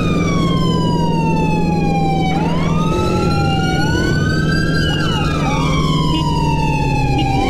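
A motorcycle engine hums and its pitch rises and falls as it rides.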